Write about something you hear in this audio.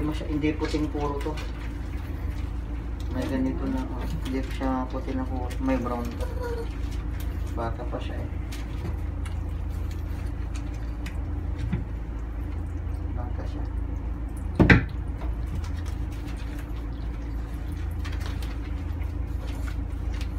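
Hands squish and rub soapy lather into a wet dog's fur.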